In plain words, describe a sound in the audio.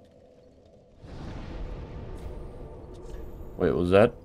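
A deep magical whoosh swells and rumbles.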